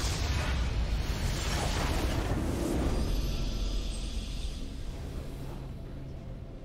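A large crystal bursts with a loud, rumbling explosion that slowly fades.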